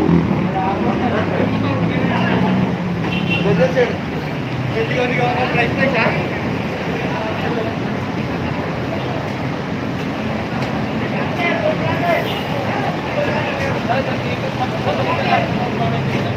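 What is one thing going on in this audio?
Men talk among themselves nearby outdoors.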